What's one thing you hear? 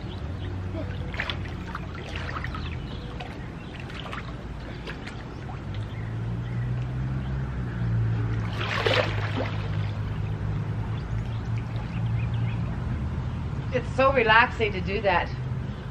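Water splashes as a boy kicks off and swims.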